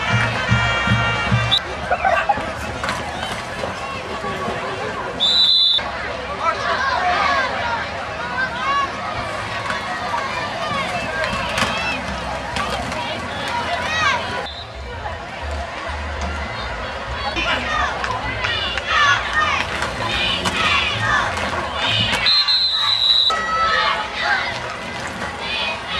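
A large crowd cheers and shouts from the stands outdoors.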